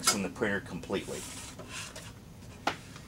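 Paper rustles as it is pulled out of a printer.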